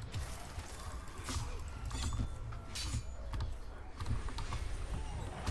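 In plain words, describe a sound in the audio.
Swords clash and slash in quick blows.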